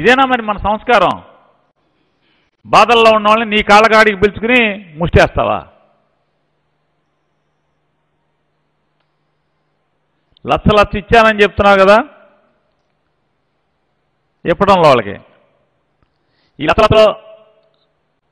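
A middle-aged man speaks forcefully into a microphone, in bursts with long pauses.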